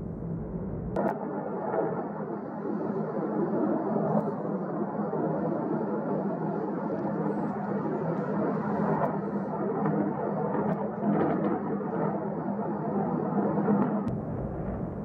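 Lava bursts and crackles as it sprays from a vent.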